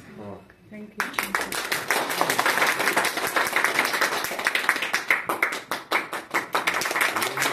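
A small group of people claps and cheers steadily.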